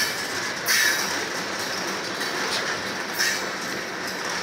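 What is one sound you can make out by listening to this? Metal wheels screech against the rails.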